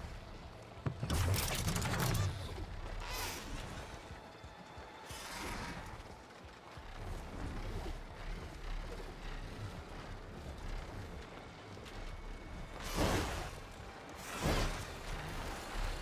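Large mechanical wings beat with loud whooshing gusts.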